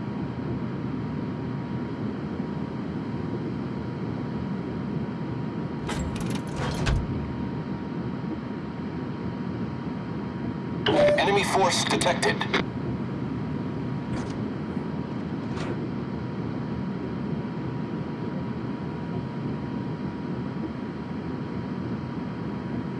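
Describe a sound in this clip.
Water rushes and splashes along a ship's hull.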